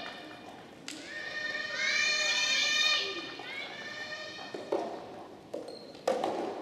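A tennis ball is struck sharply with a racket in a large echoing hall.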